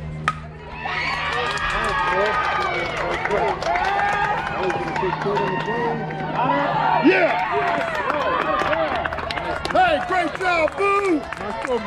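A crowd of spectators nearby cheers and shouts loudly.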